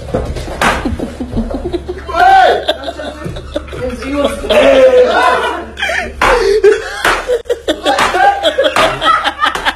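Hands slap on a body.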